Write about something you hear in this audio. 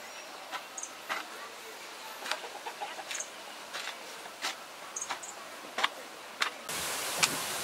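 A metal tool strikes and scrapes into dry earth.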